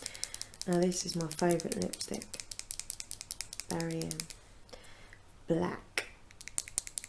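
A young woman speaks softly and close to the microphone.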